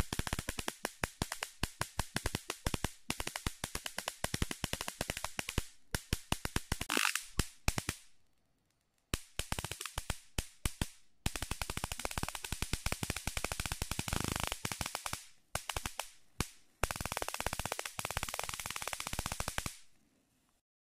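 Electric sparks snap and crackle in rapid bursts.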